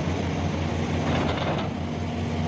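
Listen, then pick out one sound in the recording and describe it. Loose coal rattles and pours from an excavator bucket.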